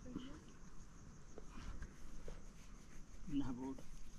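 Stones knock together as they are moved.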